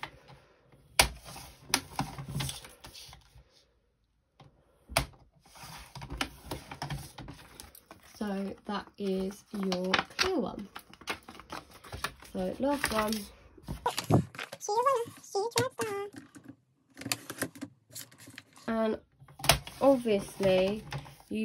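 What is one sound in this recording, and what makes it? A paper trimmer blade slides and clicks along its rail.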